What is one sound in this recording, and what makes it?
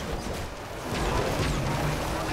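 An explosion bursts with a loud boom.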